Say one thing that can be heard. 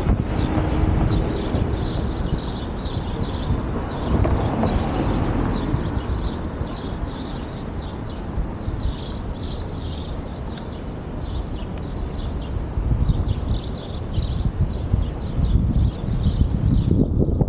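Wind buffets the microphone outdoors with a low, gusty rumble.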